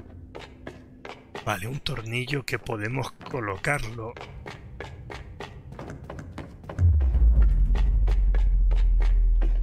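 Small footsteps patter quickly across a hard floor.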